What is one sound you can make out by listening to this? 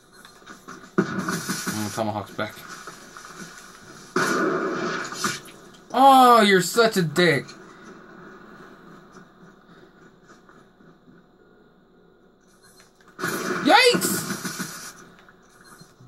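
Gunfire from a video game booms through a television's speakers in short bursts.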